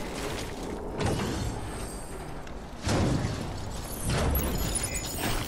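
Heavy metal cases clunk and thud as they are lifted and set down.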